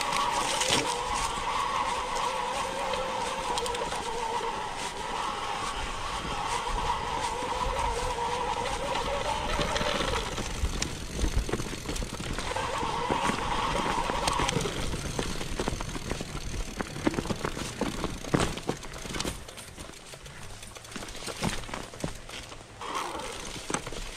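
Bike tyres roll and crunch over grass and stones.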